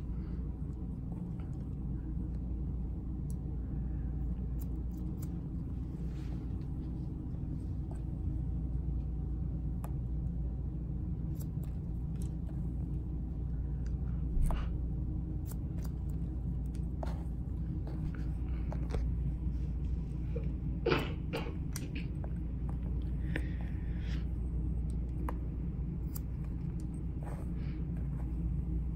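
Scissors snip through hair with small, crisp clicks.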